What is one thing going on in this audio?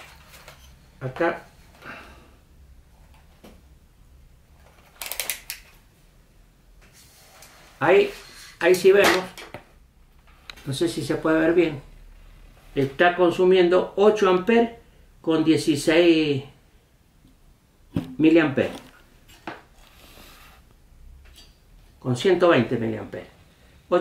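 A man talks calmly and clearly, close by, pausing now and then.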